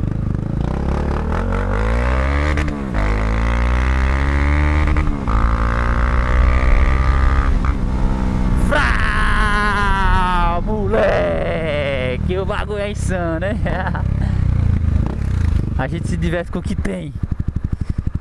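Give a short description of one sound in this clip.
A single-cylinder motorcycle accelerates hard through the gears.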